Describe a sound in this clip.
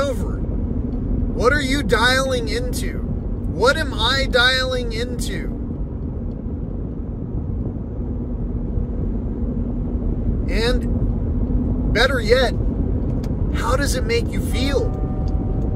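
A car's engine and road noise rumble low and steady.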